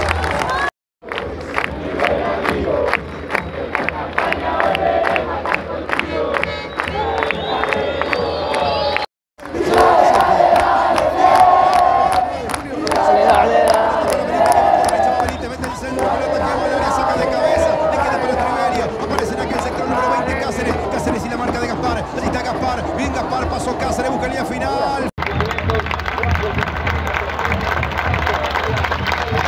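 A large crowd of football fans chants and sings in an open-air stadium.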